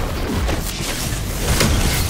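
An explosion booms with a crackling burst.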